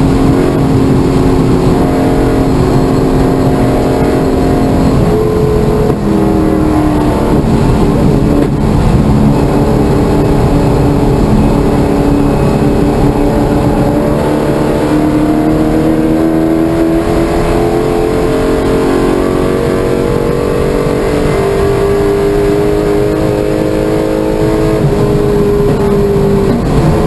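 Wind and road noise rush steadily around the car.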